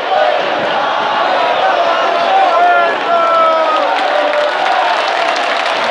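A man nearby shouts along with the chant.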